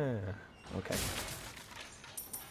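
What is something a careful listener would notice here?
A wooden crate smashes and splinters.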